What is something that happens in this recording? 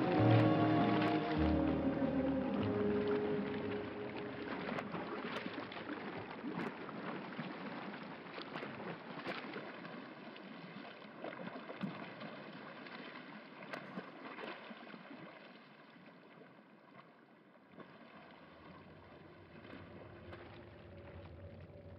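A swimmer splashes through the water with steady strokes.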